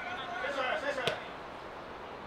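A football is kicked with a thud.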